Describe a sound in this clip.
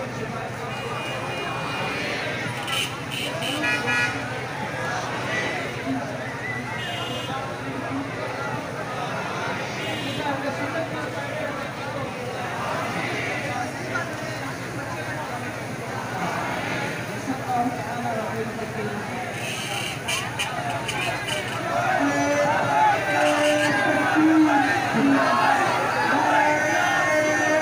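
A large crowd of men chants and shouts outdoors.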